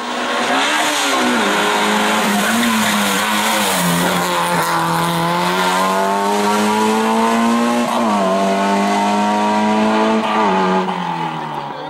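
A racing car engine drops in pitch briefly with each gear change.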